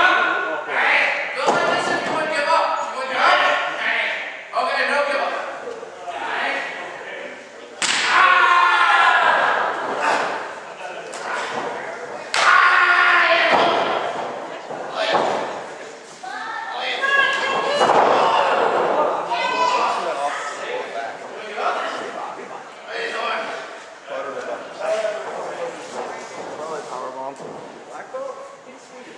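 Adult spectators talk and shout in an echoing hall.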